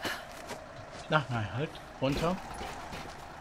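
A young woman grunts with effort.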